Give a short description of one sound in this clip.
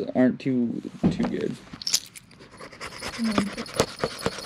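Paper cards rustle and crinkle as they are handled.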